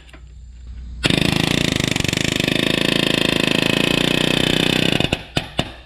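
A cordless impact driver hammers rapidly for several seconds, then stops.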